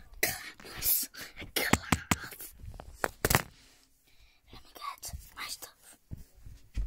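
A young boy talks excitedly close to a phone microphone.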